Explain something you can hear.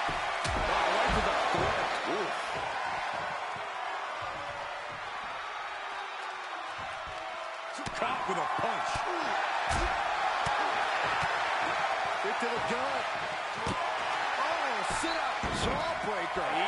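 Heavy bodies thud hard against a floor.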